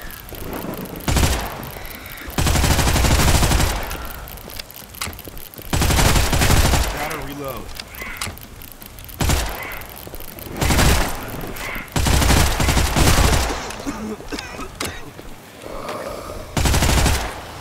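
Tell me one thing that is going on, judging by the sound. Gunfire rattles in loud, repeated bursts.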